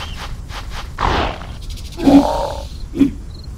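A big cat snarls as it attacks its prey.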